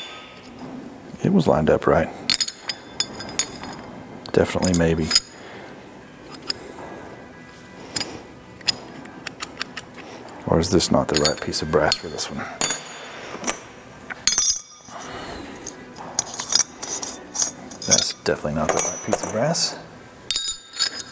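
Metal parts clink on a workbench.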